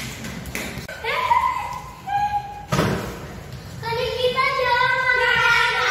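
Young girls shout and squeal.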